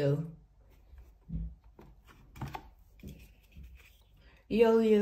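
Stiff cardboard pieces knock and tap softly as hands handle them.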